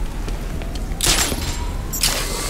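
A grappling hook fires with a sharp whoosh.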